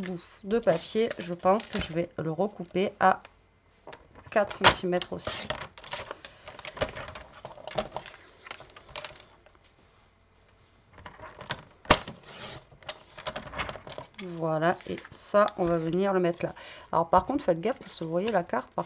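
Card stock rustles and taps as it is handled.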